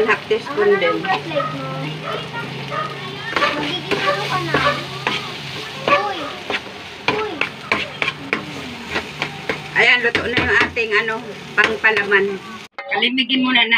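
A metal spatula scrapes and stirs food in a frying pan.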